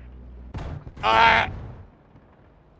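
A tank explodes with a loud blast.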